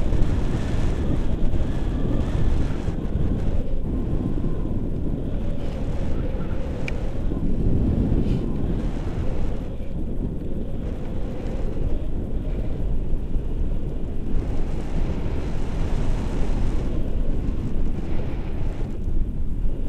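Strong wind rushes and buffets loudly past a close microphone, high in open air.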